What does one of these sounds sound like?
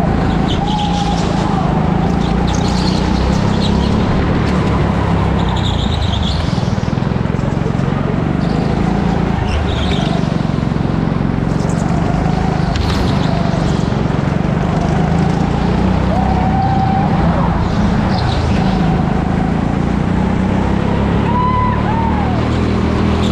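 A go-kart engine buzzes loudly and steadily, rising and falling in pitch as the kart speeds up and slows.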